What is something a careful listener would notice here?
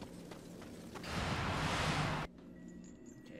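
A magical whoosh swells and cuts off.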